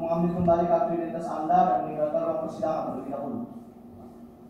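A man speaks steadily through a microphone in an echoing room.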